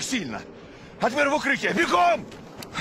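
A man shouts an order.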